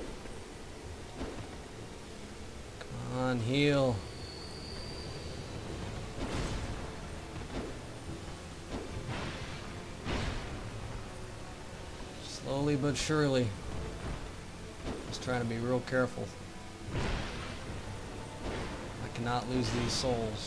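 A heavy blade swooshes through the air.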